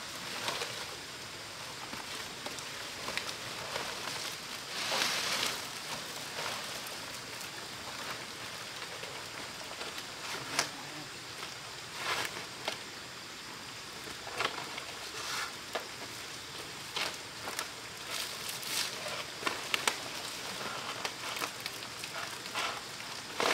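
Large dry palm leaves rustle and swish as they are handled.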